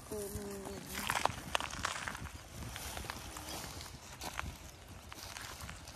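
Footsteps crunch on dry litter.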